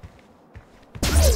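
An explosion bursts with a loud roar.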